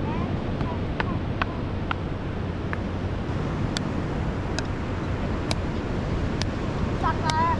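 A paddle smacks a ball now and then.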